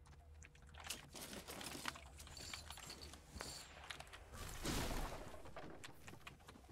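A pickaxe thuds against wood in a game.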